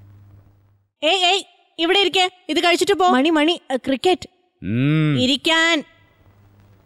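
A middle-aged woman shouts out with animation.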